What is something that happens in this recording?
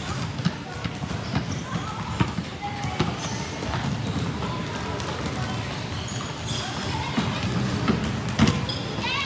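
Children shout and chatter nearby.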